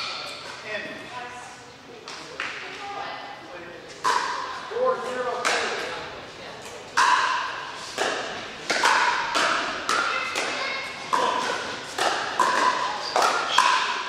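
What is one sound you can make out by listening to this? Pickleball paddles pop against a ball in a quick rally, echoing in a large hall.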